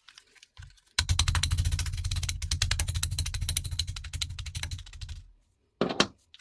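A plastic hand tool clicks rapidly.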